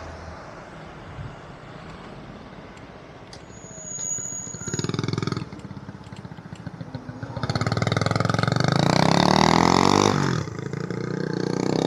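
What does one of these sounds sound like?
Car engines idle and hum nearby in slow traffic.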